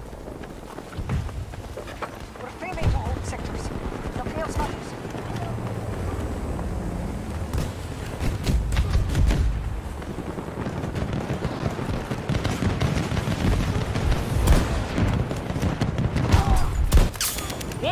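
Gunshots crack in a game.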